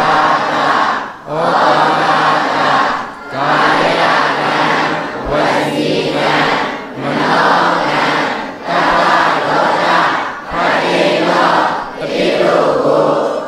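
A large crowd chants a prayer in unison, echoing in a large hall.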